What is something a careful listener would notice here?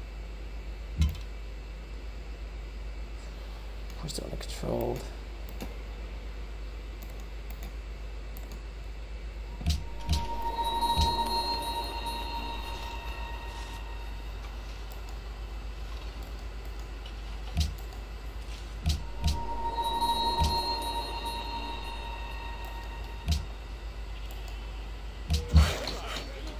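Soft game interface chimes and clicks sound now and then.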